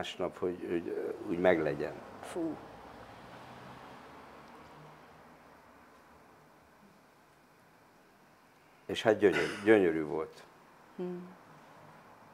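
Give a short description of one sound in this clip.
An elderly man speaks calmly and thoughtfully into a close microphone.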